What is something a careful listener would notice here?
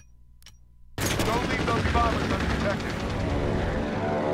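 A propeller fighter plane's engine roars in flight.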